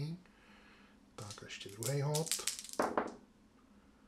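Dice click softly as a hand pushes them across a cloth.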